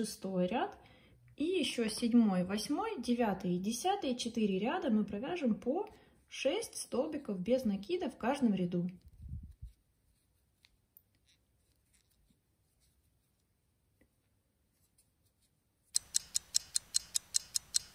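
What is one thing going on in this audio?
A crochet hook softly ticks and rustles through yarn.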